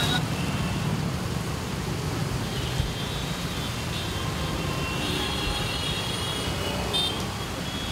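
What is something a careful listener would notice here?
Horns honk repeatedly in the traffic.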